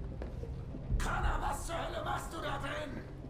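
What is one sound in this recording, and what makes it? A young woman speaks sharply and tensely, close by.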